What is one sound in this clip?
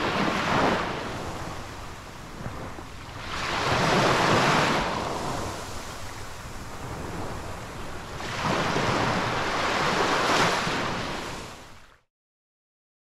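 Small waves wash up and break on a sandy shore, surging in and hissing back out.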